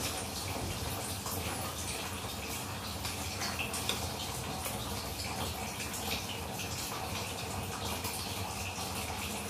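Food sizzles and crackles in a frying pan.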